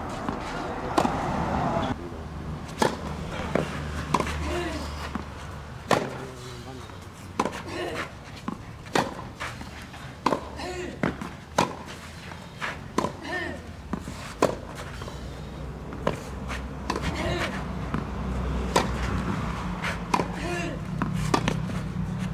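Tennis rackets strike a ball again and again, in sharp pops.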